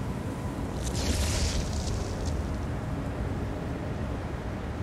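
A many-headed monster roars loudly.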